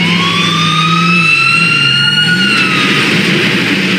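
A police siren wails, rising and then dropping away.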